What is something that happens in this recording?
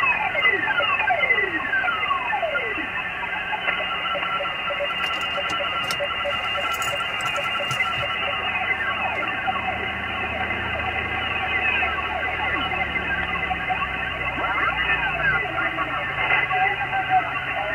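A radio receiver crackles with static hiss from its loudspeaker.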